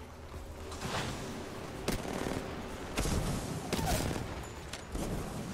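Gunshots crack in short sharp bursts.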